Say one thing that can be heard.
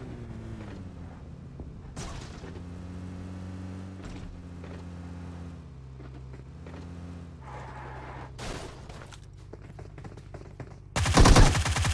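A vehicle engine rumbles steadily as it drives and shifts pitch.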